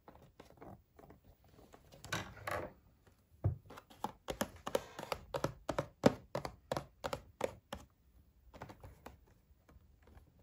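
Plastic packaging crinkles and taps as it is handled.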